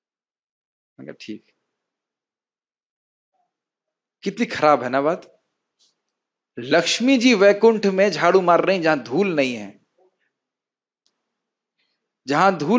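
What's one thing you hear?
A man sings into a microphone in a melodic chant, with pauses between phrases.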